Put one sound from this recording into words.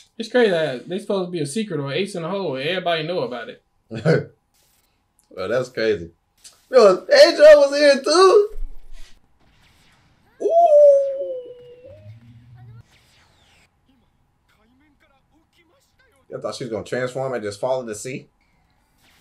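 A man talks with animation.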